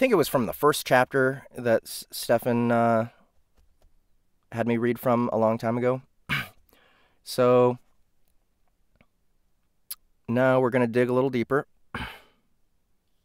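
A young man speaks casually and close into a microphone, in short bursts with pauses.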